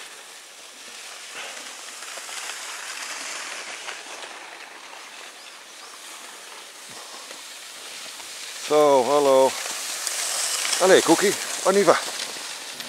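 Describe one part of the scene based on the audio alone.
Skis scrape and glide over snow.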